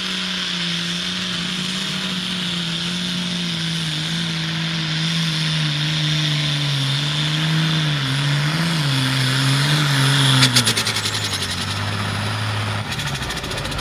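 A tractor engine roars loudly under heavy load.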